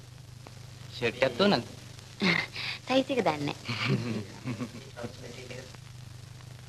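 A young woman speaks cheerfully nearby.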